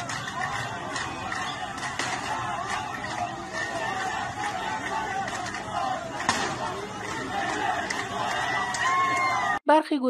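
A large crowd of people chants and shouts outdoors.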